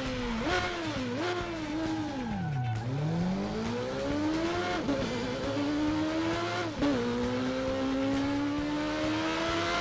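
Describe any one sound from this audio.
A motorcycle engine revs high, dropping and rising in pitch as it shifts gears.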